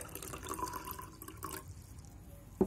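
Water pours into a glass.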